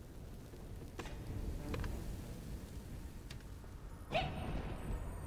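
Soft clicks sound now and then.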